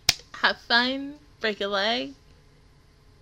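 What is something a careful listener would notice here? A young woman speaks cheerfully and close into a microphone.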